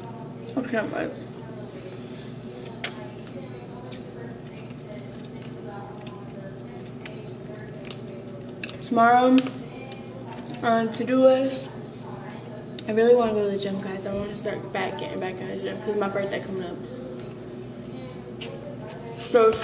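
A fork scrapes and clicks on a plate.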